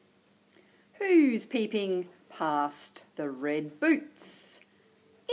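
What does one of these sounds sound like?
A woman reads aloud in a lively, sing-song voice close to a microphone.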